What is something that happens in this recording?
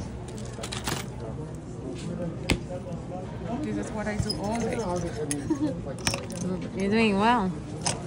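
Small metal pieces click and clink against a tray.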